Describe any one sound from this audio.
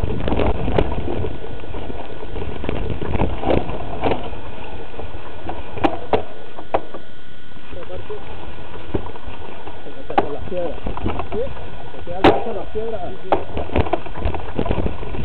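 A mountain bike rattles and clatters over a bumpy dirt trail.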